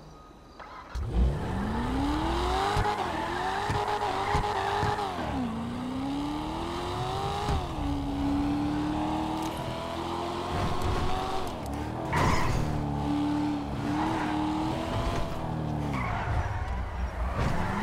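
A car engine revs and roars as the car speeds along, rising and falling in pitch with each gear.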